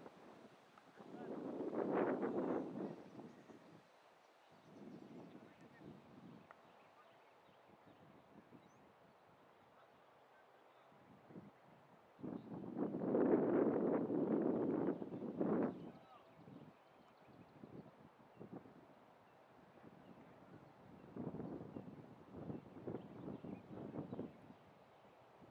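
Wind blows in gusts across an open field.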